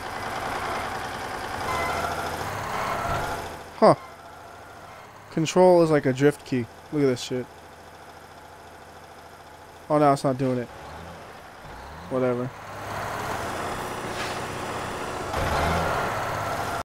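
A truck engine rumbles and revs.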